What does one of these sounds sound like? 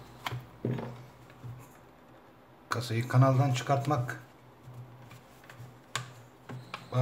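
Plastic parts of a phone click and tap as they are handled.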